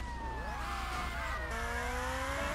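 A police siren wails nearby.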